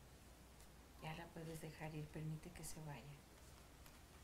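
A woman speaks softly and calmly nearby.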